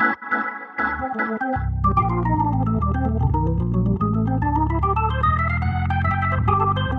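A keyboard plays a lively melody with chords.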